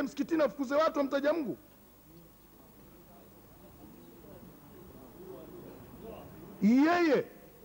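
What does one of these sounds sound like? An elderly man speaks forcefully into a microphone, heard through a loudspeaker in an echoing room.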